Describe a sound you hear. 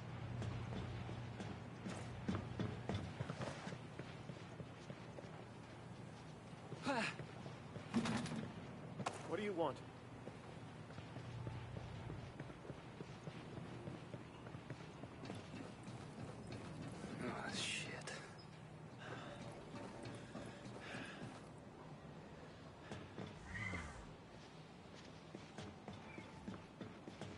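Boots thud and clang quickly on metal stairs and hard ground.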